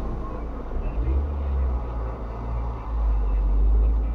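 A diesel tipper truck passes close by.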